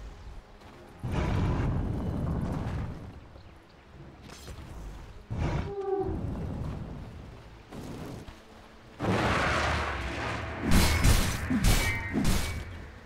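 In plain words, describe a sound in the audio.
Video game spell effects whoosh and crackle in bursts.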